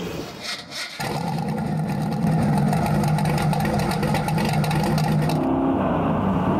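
A car engine rumbles and revs loudly close by.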